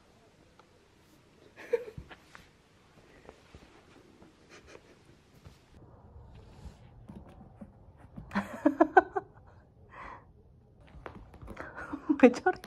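A cat's paws scratch and scuffle on carpet.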